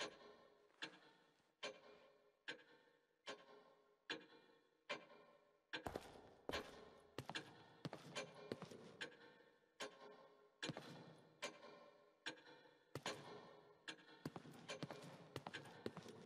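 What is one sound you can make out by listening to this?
Slow footsteps echo on a hard floor.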